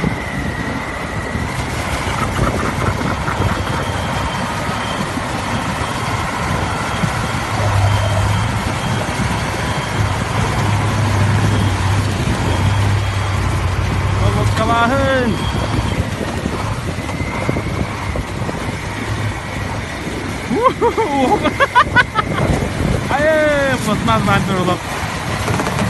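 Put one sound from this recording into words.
A heavy truck engine roars and strains.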